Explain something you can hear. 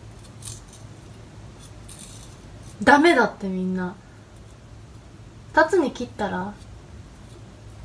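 A knife scrapes peel from a piece of fruit.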